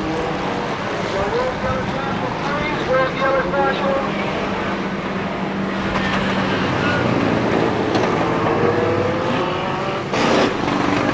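Car engines roar and rev as cars race around a track outdoors.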